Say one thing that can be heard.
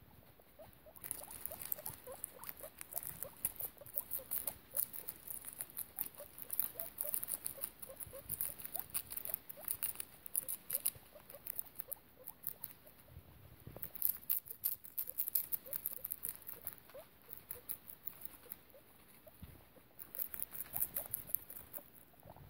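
Guinea pigs crunch and munch on crisp lettuce close by.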